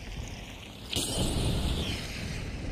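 Sparks crackle and hiss overhead.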